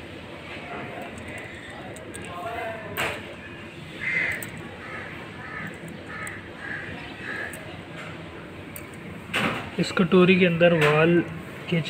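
Metal engine parts click and clink under a hand.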